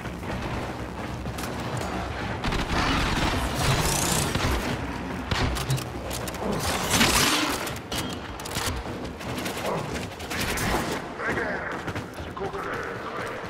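Quick footsteps thud as a figure runs.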